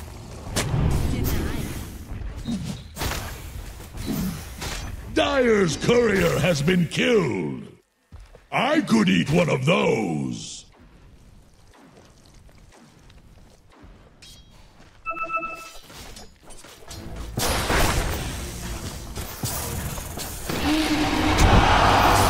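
Magic blasts and weapon hits clash in a fast game battle.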